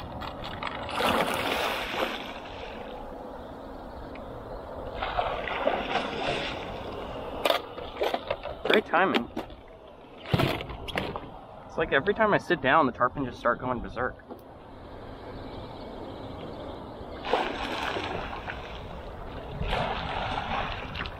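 Fish splash and thrash at the water's surface.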